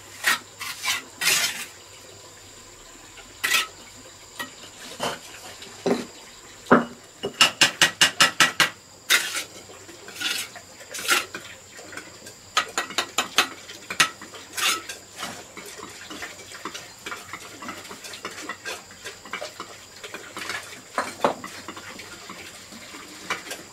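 A trowel taps and scrapes on bricks.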